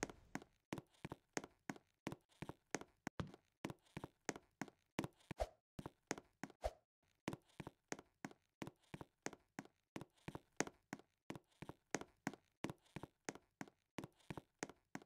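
Footsteps run up stone stairs in quick, even steps.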